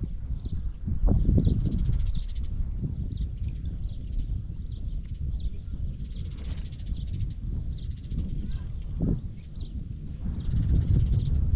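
Wind blows and rumbles across the microphone outdoors.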